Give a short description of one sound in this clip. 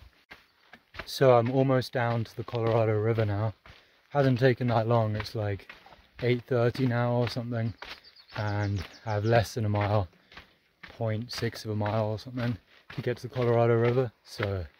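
A young man talks calmly, close to the microphone, outdoors.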